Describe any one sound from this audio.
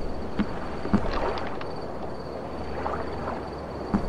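Footsteps knock on wooden boards.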